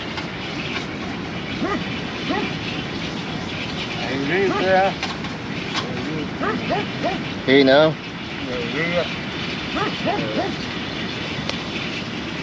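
A small wood fire crackles softly.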